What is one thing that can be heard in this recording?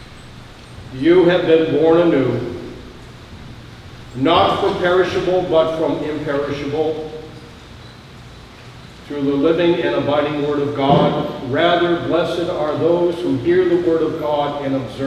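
An elderly man speaks calmly through a microphone in a room with some echo.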